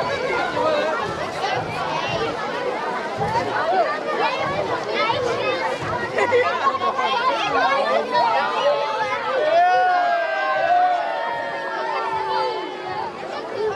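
A crowd of people chatters and calls out nearby outdoors.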